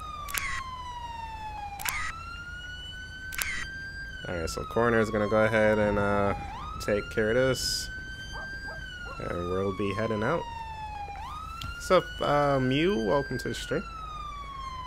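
A siren wails up and down steadily.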